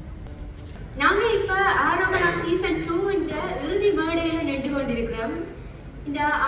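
A young woman sings into a microphone through loudspeakers in a large hall.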